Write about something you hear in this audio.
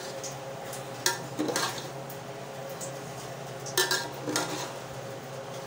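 A metal spoon clinks and scrapes against an aluminium pot while stirring cooked rice.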